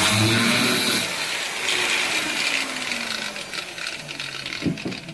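An angle grinder motor winds down.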